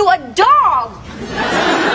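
A young woman cries out loudly with animation.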